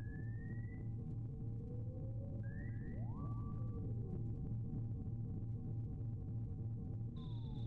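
Chiptune video game music plays steadily with a low droning beat.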